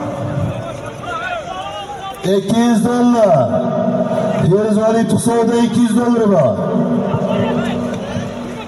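A large crowd of men shouts and clamours outdoors.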